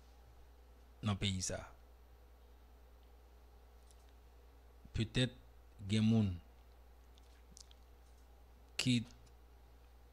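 A man speaks in short bursts close to a microphone, with long pauses.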